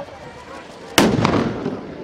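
A loud bang goes off close by.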